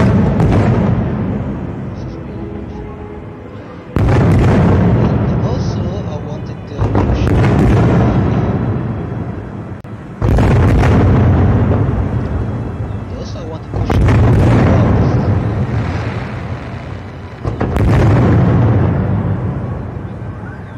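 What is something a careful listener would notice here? Fireworks crackle and fizz after each burst.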